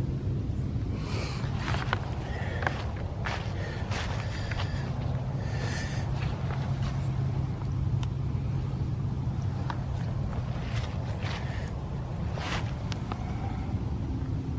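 Footsteps crunch through frosty grass.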